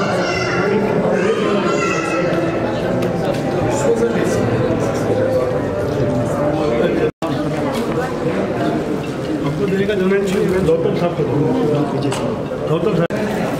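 An elderly man talks with animation nearby.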